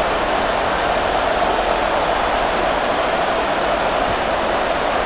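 A large crowd cheers and roars steadily in a big open stadium.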